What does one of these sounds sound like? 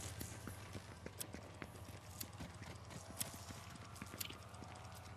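Footsteps run quickly across a hard stone floor.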